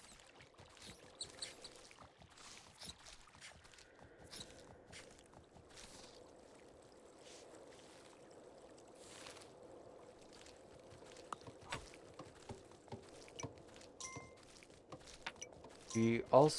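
Horse hooves clop steadily along the ground.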